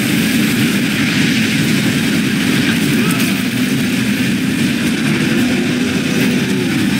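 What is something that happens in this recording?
Water churns and splashes loudly as a large creature surges through a lake.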